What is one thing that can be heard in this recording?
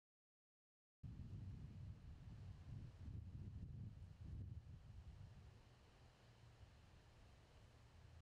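Wind rumbles low outdoors.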